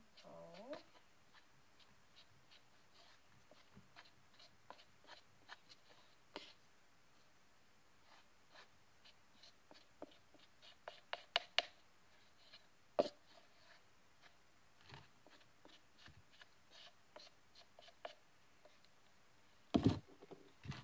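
A spoon taps and scrapes in a small bowl.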